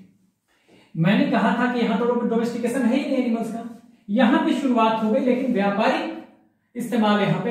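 A man speaks clearly and steadily, as if explaining, close by.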